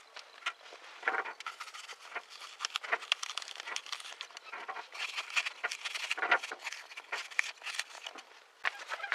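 A knife cuts and scrapes crunchily into a crisp apple.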